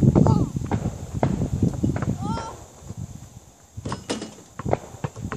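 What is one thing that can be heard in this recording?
A basketball clangs off the rim and backboard.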